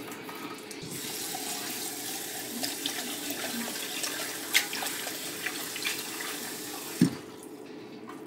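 Water runs from a tap into a metal pot.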